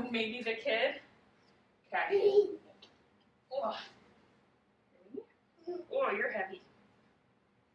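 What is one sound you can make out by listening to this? A young woman talks with animation to a toddler nearby.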